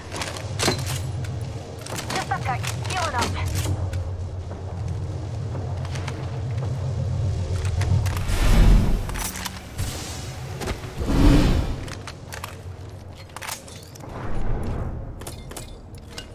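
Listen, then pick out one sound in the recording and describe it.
A gun clatters as it is picked up.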